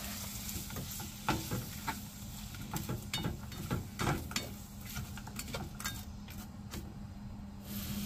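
A spatula scrapes and clicks against a frying pan.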